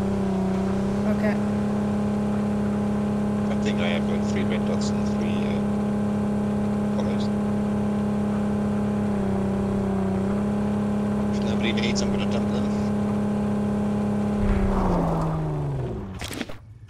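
A vehicle engine drones steadily as it drives over rough ground, then winds down.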